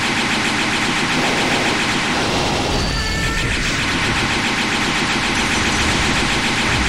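Game explosions and energy blasts roar and crackle continuously.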